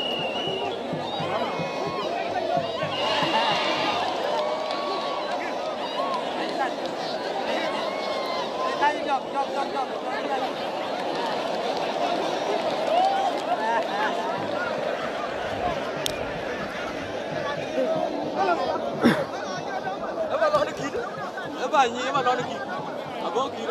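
A large outdoor crowd cheers and chatters.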